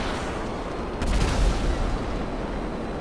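A jet engine blasts with a sudden loud whoosh.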